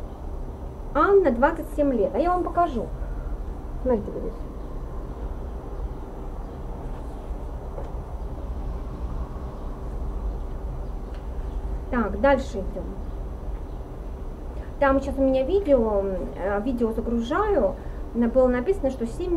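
A woman reads aloud calmly, close to a microphone.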